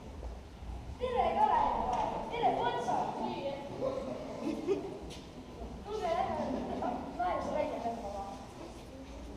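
A young woman speaks with animation in a large echoing hall.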